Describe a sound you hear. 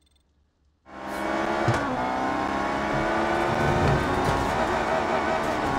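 A sports car engine roars at high revs as the car races along.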